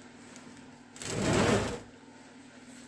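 A heavy metal casing scrapes and slides as it is turned on a wooden board.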